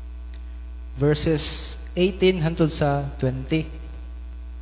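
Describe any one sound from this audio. A young man speaks through a microphone.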